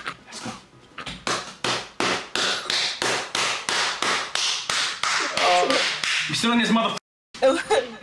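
Hands clap rapidly over an online call.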